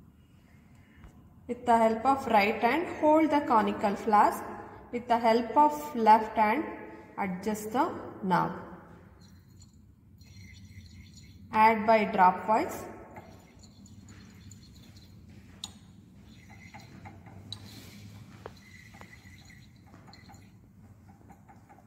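Liquid swirls softly in a glass flask.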